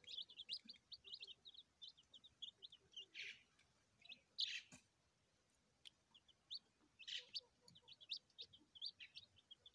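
Many young chicks cheep in high, rapid peeps close by.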